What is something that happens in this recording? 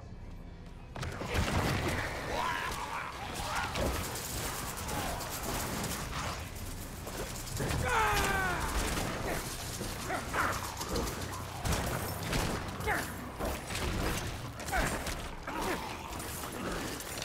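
Game combat sounds clash and crash in quick succession.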